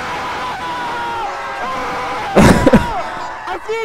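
A young man shouts excitedly.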